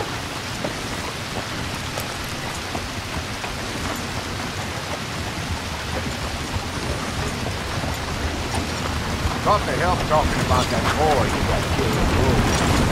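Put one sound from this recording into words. A horse's hooves clop slowly on soft wet ground.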